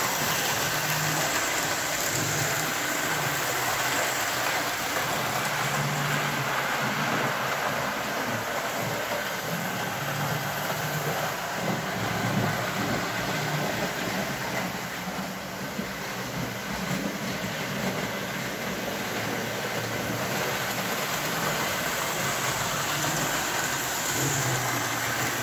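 A toy locomotive hums with a low electric drone.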